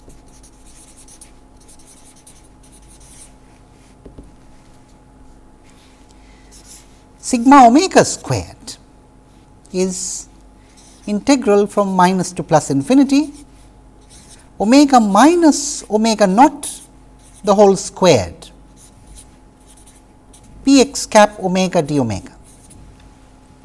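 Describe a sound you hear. A felt marker squeaks and scratches on paper.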